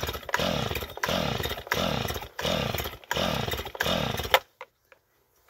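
A chainsaw's starter cord is yanked again and again with a rasping whirr, but the engine does not start.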